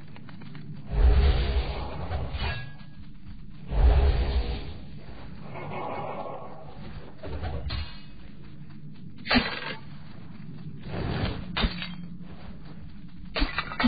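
Fiery spells burst and roar in short blasts.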